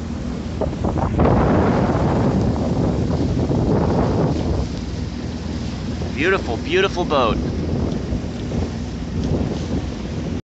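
Choppy waves slosh and splash on open water.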